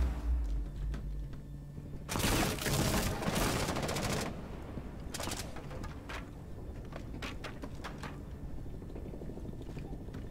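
Footsteps thud on hard stairs.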